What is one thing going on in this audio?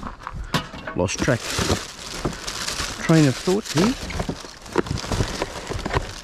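A plastic bag crinkles.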